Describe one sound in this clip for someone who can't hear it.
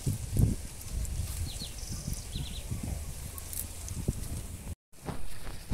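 Leaves rustle and snap as greens are cut by hand.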